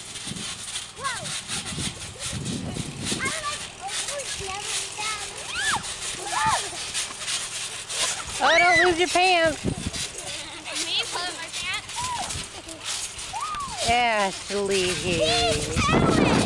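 Children squeal and shout with high voices close by.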